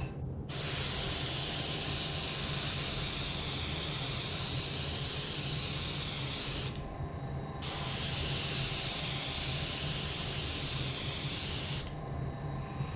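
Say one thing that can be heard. An airbrush sprays with a steady, loud hiss, pausing once.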